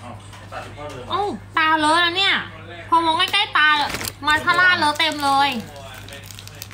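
A young woman talks animatedly and close by.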